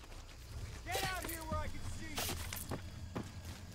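A man shouts sharply nearby.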